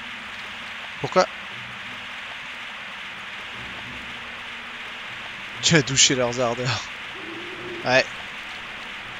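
A young man speaks into a microphone in short animated bursts.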